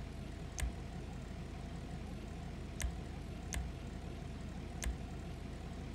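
A soft click sounds each time a menu option changes.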